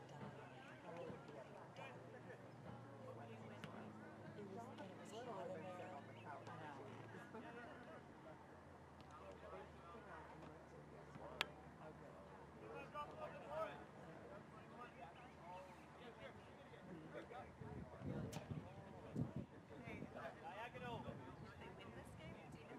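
Young players call out to each other across an open field.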